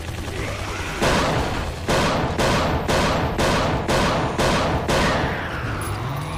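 A pistol fires a rapid series of loud shots that echo.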